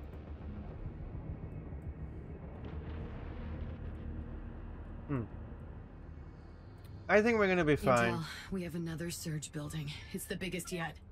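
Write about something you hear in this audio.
Spaceship engines hum with a low, steady rumble.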